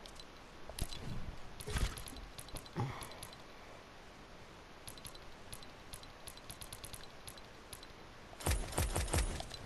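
Menu selection clicks tick quickly.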